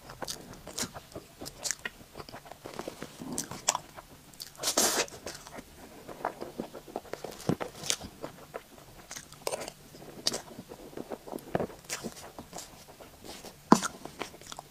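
A metal spoon clinks and scrapes against a plate.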